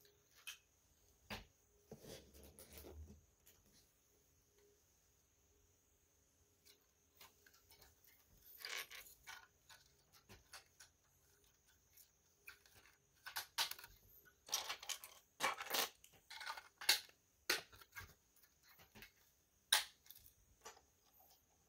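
Plastic toy bricks click and clatter as hands handle them.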